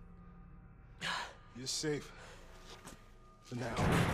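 A young man speaks calmly.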